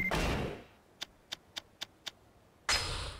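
Menu clicks tick sharply.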